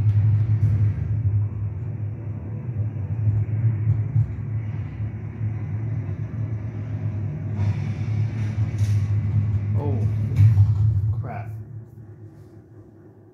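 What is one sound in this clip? A video game's deep mechanical rumble drones through a television speaker, then fades away.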